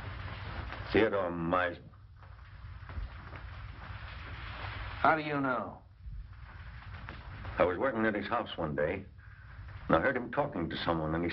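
A man speaks in a low, tense voice, in short bursts.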